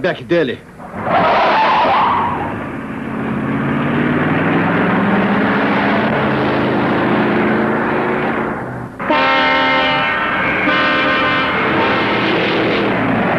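A car engine drones as it drives along a road.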